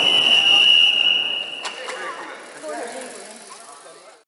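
Bicycles roll over paving stones.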